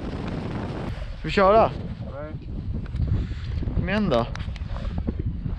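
Small waves lap gently against a boat.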